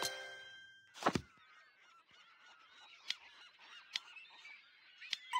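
Soft interface clicks tap now and then.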